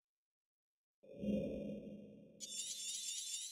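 A deep game whoosh sweeps through.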